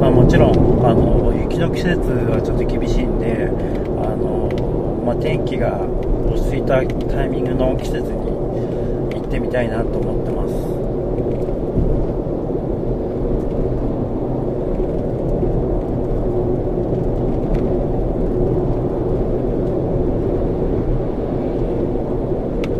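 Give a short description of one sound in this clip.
A car's engine and tyres rumble steadily from inside the car on a highway.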